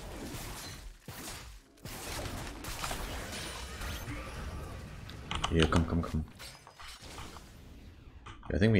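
Spells whoosh and crackle in quick bursts.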